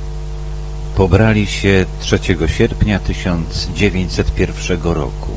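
An elderly man speaks calmly into a microphone over loudspeakers.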